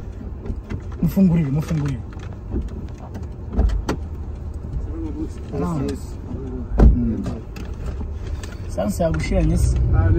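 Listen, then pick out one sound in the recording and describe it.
A young man speaks casually inside a car.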